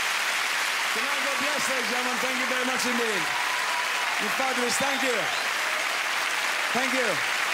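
A man speaks with animation through a microphone over the applause.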